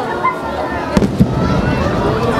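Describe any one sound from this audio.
A firework bursts with a loud bang.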